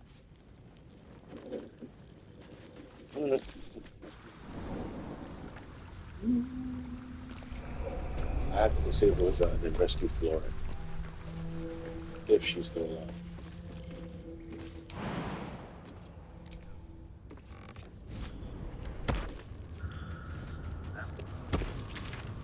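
Footsteps tread on stone and wooden boards.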